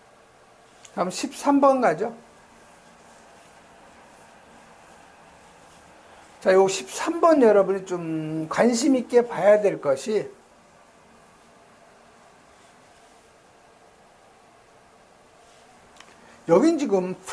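A middle-aged man speaks calmly into a microphone, as if lecturing.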